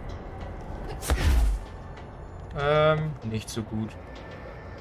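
A body lands with a heavy thud after a jump.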